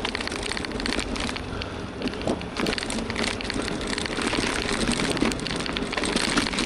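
Small wheels rattle and rumble over rough pavement.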